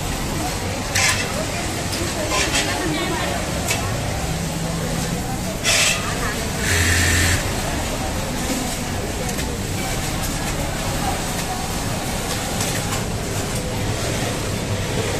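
Steady machine noise hums in the background.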